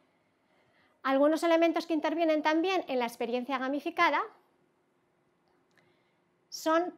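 A woman speaks clearly into a close microphone.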